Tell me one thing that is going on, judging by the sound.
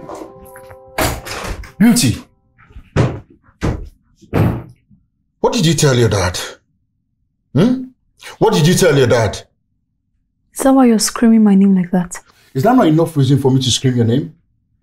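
A woman answers in a raised voice nearby.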